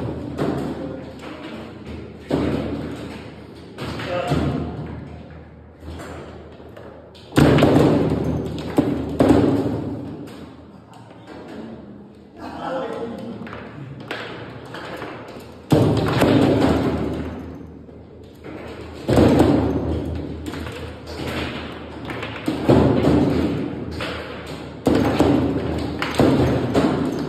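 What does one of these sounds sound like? Foosball rods spin and clatter as players strike a ball.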